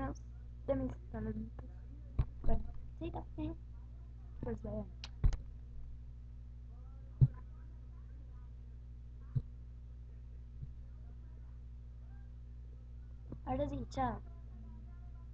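A young girl speaks close to a microphone in short bursts.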